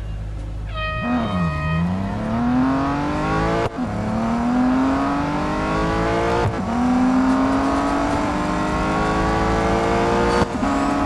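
A car engine revs up and accelerates hard, climbing through the gears.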